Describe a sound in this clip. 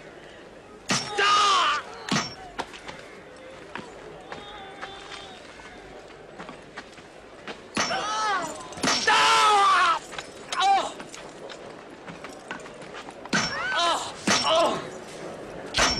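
A man screams in agony.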